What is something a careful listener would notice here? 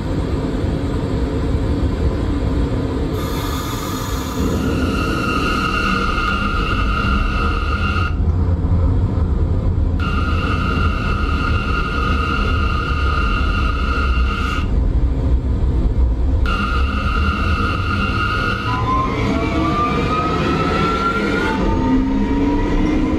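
A subway train rumbles steadily along the track.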